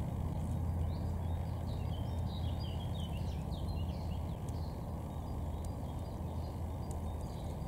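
Water flows and gurgles steadily nearby.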